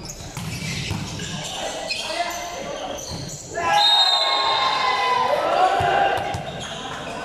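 Young women chatter and call out in a large echoing hall.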